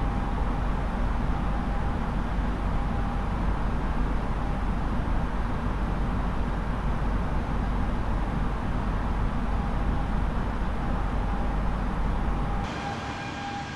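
Jet engines roar steadily and low.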